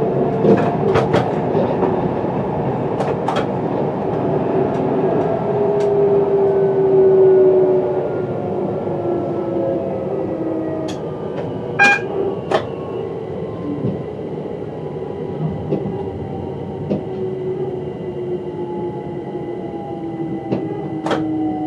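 A train rumbles steadily along the tracks, its motor humming and slowly falling in pitch as it slows.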